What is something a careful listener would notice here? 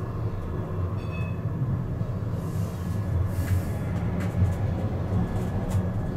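Another tram passes close by in the opposite direction.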